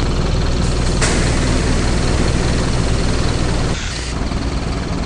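Bus doors hiss as the air releases.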